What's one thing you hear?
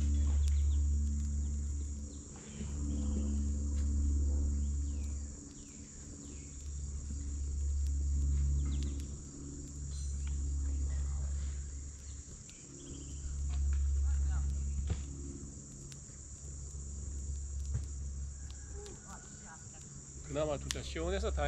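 A wood fire crackles and pops close by, outdoors.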